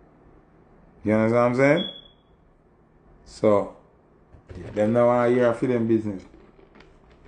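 A man speaks close to a microphone in a relaxed, talkative way.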